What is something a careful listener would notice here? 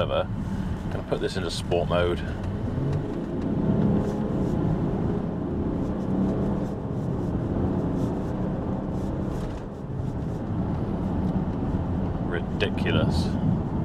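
A man speaks briefly and calmly close by.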